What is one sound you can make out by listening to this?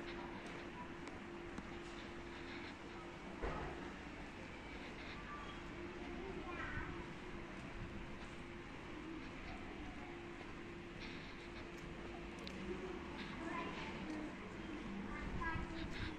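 Quiet outdoor town hubbub murmurs in the background.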